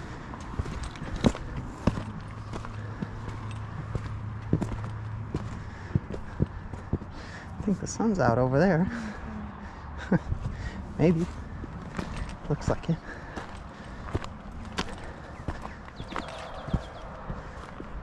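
Footsteps crunch on a stony gravel trail.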